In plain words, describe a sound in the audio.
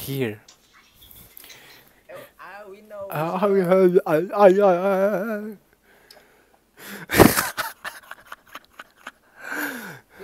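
Young men laugh close to a microphone.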